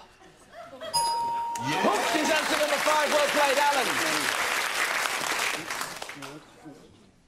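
A group of people clap and cheer.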